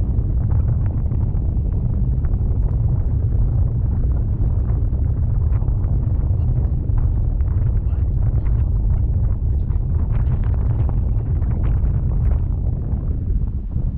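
Strong wind buffets a microphone, roaring steadily.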